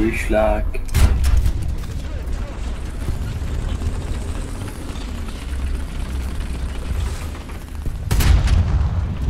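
A tank cannon fires with a loud bang.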